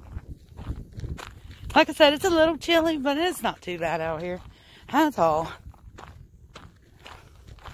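Footsteps crunch on loose gravel.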